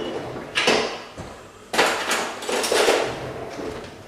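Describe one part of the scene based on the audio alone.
Cutlery rattles in a drawer.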